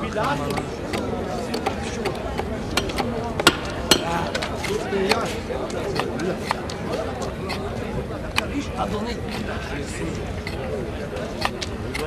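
A crowd of men murmurs and shouts nearby.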